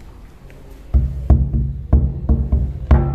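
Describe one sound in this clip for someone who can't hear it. A large drum is struck with a stick in quick, booming beats.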